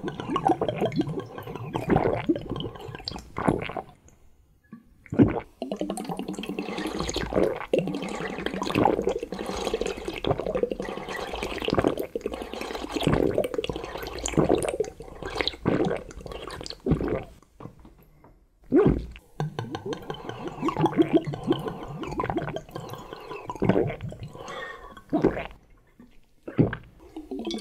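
A man loudly slurps and sucks jelly from a bottle, close up.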